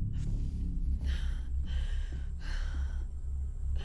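A young woman breathes shakily.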